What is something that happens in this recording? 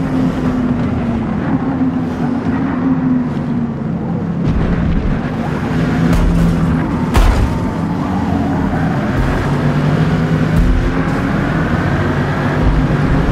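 Many race car engines drone close by.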